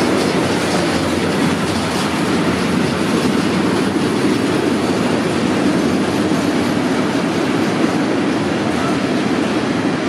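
Steel wheels clatter on the rails.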